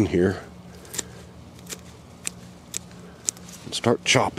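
Scissors snip through plant stems with sharp clicks.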